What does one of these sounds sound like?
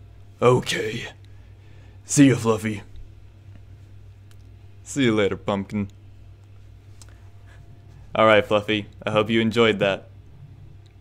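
A young man talks casually and close to a microphone, in short bursts with pauses.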